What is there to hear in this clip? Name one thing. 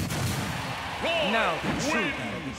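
A young man shouts a battle cry.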